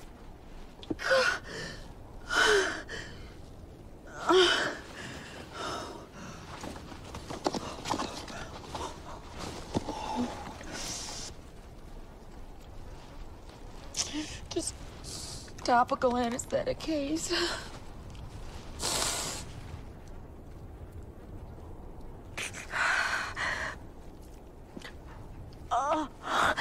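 A woman speaks in a strained, breathy voice close by.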